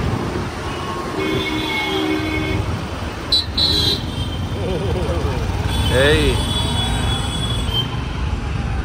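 Engines rumble steadily in busy road traffic.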